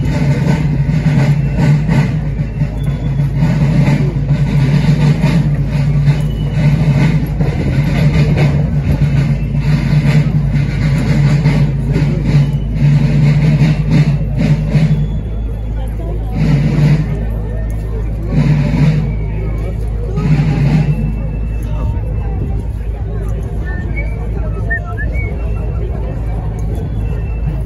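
Many feet march in step on pavement.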